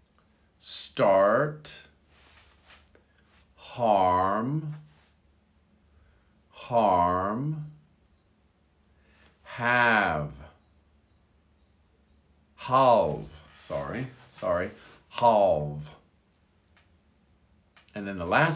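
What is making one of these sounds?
A middle-aged man speaks words slowly and clearly, one at a time, close to a microphone.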